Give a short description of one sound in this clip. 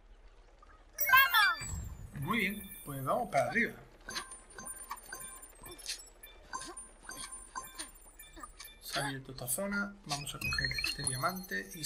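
Coins chime in quick bright tinkles as they are collected.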